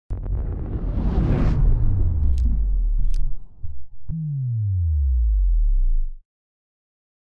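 A whooshing rush swells and then drops away in a falling sweep.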